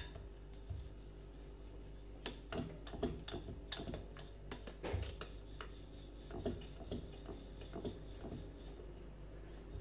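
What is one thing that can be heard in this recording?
A rolling pin rolls dough on a wooden board with soft knocks.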